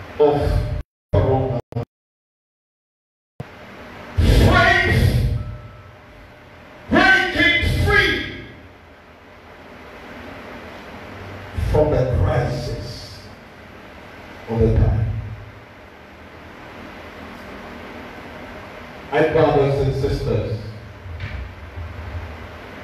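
An elderly man speaks loudly through a microphone and loudspeakers in short bursts with pauses.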